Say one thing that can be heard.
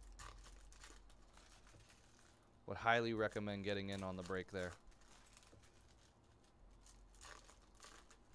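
Foil card wrappers crinkle and rustle as hands tear them open.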